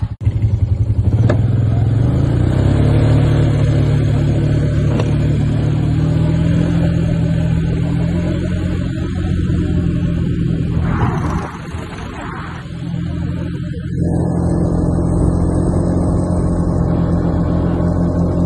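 A quad bike engine drones steadily up close.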